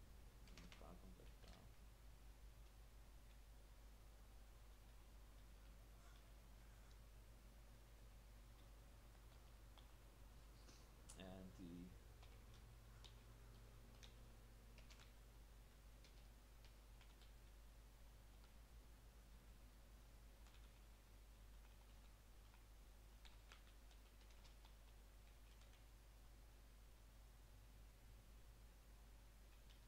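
Computer keys click in short bursts.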